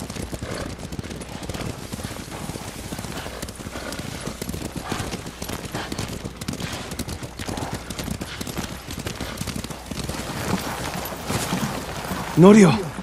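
Horses' hooves pound at a gallop over snowy ground.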